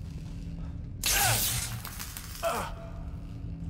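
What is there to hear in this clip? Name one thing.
A loud electric blast crackles and bursts.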